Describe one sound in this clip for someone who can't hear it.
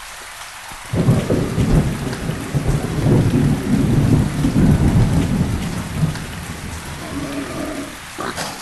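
A large beast stomps heavily on the ground.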